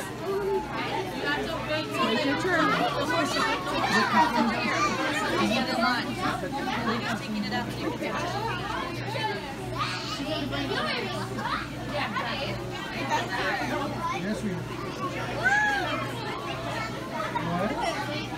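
A crowd of adults and children chatters close by.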